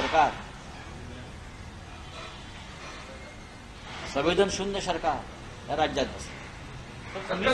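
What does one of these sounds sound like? A middle-aged man speaks calmly into a nearby microphone, with pauses.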